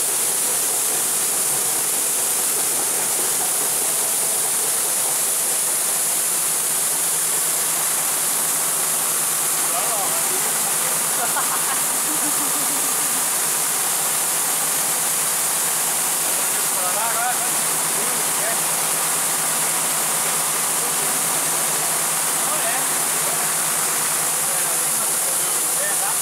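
Grain pours steadily in a hissing rush from a trailer chute.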